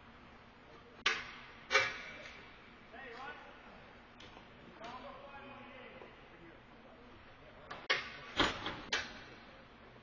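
Hockey sticks and pucks clack sharply in a large echoing rink.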